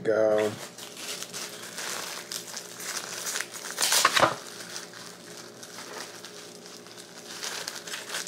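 A plastic wrapper crinkles in a man's hands.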